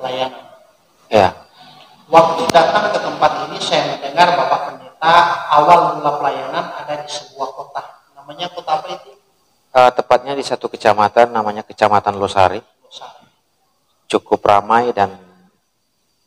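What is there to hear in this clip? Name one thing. A second man answers calmly close to a microphone.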